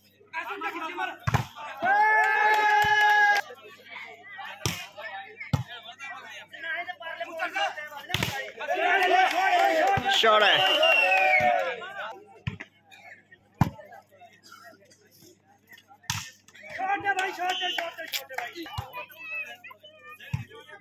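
Young men shout and cheer during play.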